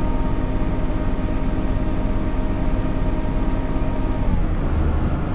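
A train's engine hums steadily as it runs along the track.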